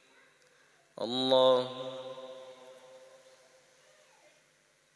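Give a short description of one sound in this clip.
An elderly man calls out a short sung phrase through a microphone, echoing in a large hall.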